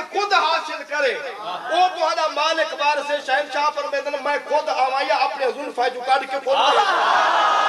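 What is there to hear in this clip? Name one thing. A man recites loudly and with passion through a microphone.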